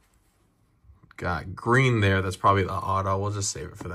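Trading cards slide and rustle against each other.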